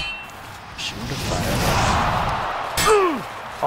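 A fire spell whooshes and roars.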